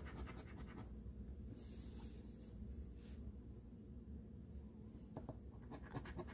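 A coin scratches across a scratch-off lottery ticket.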